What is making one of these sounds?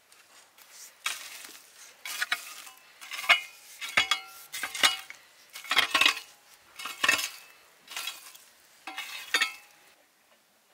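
A pitchfork rakes and crunches through dry ashes.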